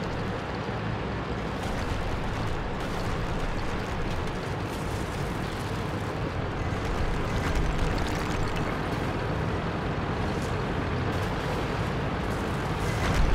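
A heavy tank engine rumbles steadily as the tank drives along.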